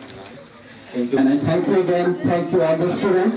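A man speaks into a microphone, heard through loudspeakers.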